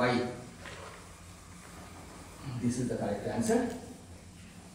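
A cloth wipes across a chalkboard.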